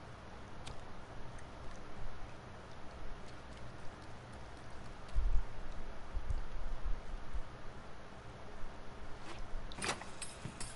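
Small footsteps patter softly on a wooden floor.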